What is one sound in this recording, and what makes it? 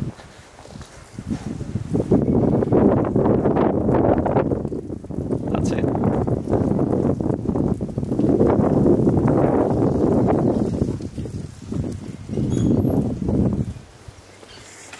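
Wind gusts and rumbles over the microphone outdoors.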